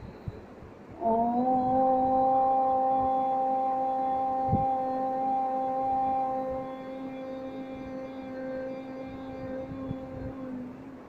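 An older woman chants one long, steady note close by.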